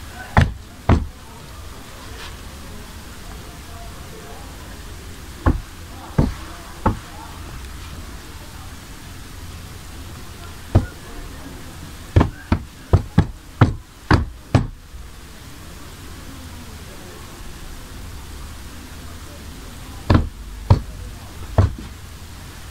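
Hands pat down on cloth over a wooden table with soft thumps.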